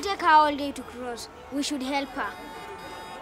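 A woman speaks loudly outdoors.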